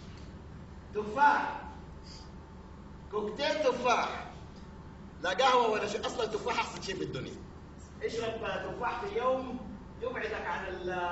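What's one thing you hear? A man speaks loudly and with animation in a large echoing hall.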